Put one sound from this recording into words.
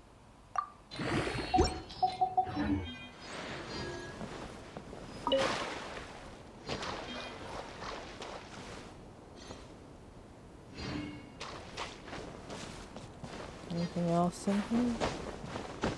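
Bright electronic chimes ring out in short bursts.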